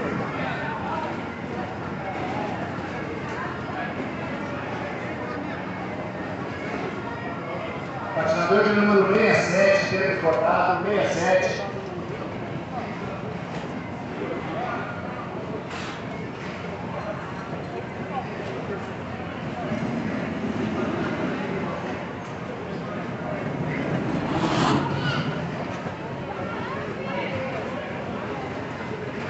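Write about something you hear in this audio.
A crowd of children and adults chatters.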